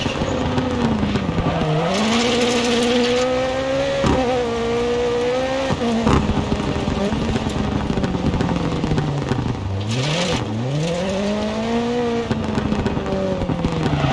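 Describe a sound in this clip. A rally car engine revs hard, rising and falling in pitch.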